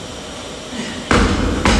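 Weight plates on a barbell clank as it is lifted.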